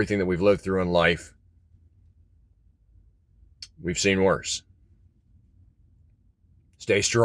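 A middle-aged man speaks calmly and close to the microphone, in short phrases with pauses.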